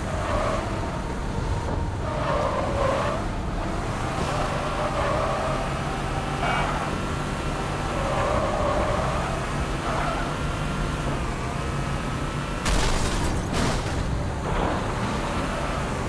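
A vehicle engine roars steadily as it drives.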